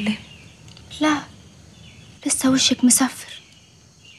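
Another young woman answers softly, close by.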